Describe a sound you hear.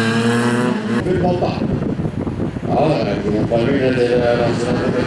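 Many racing car engines rumble and rev loudly together.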